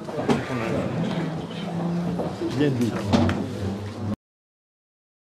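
Several men talk over one another loudly in a crowded room.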